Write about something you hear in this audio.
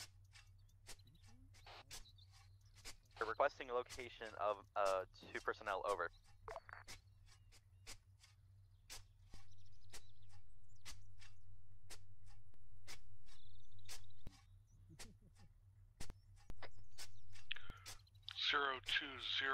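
A hand digs and scrapes in dry leaves and soil.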